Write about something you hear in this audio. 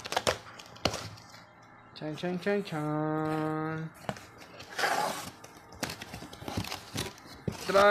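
Cardboard flaps scrape and thump as a box is opened.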